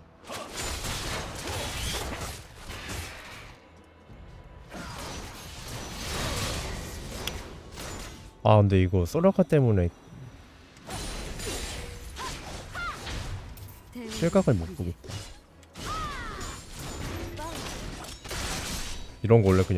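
Magic blasts and weapon hits crackle in a fast game skirmish.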